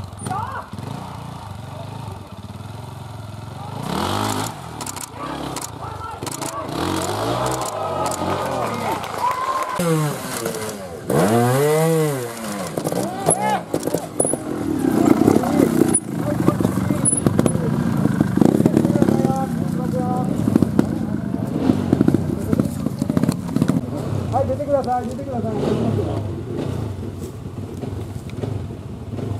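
A motorcycle engine revs hard in sharp bursts, close by.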